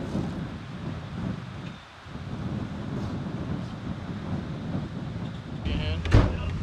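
Wind blows steadily and rustles palm leaves.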